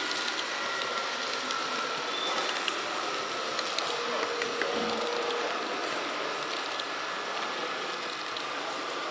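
Wheels click over rail joints.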